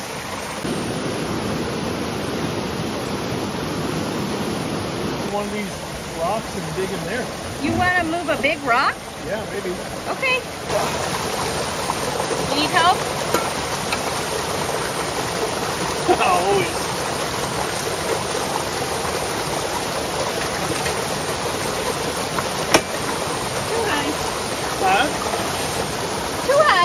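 A mountain stream rushes steadily over rocks.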